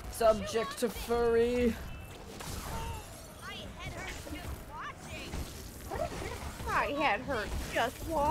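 Blades clash and strike in a fight with a monster.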